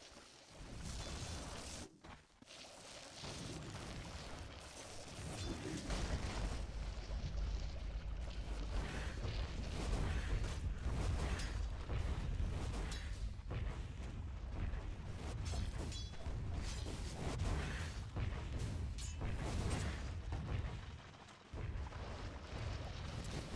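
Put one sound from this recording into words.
Game weapons hit with sharp thuds.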